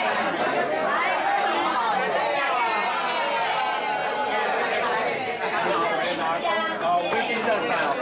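An elderly man talks loudly close by.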